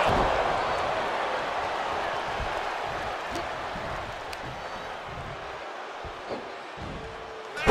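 A large crowd roars and cheers steadily in a big arena, slowly fading.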